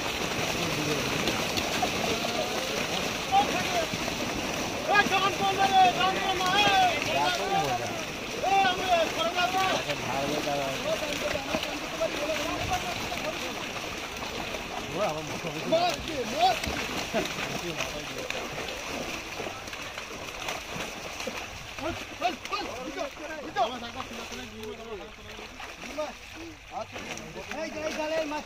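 Several men shout and call out excitedly outdoors.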